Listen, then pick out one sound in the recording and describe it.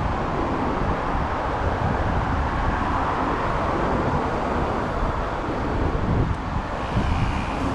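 Wind rumbles steadily across a microphone outdoors.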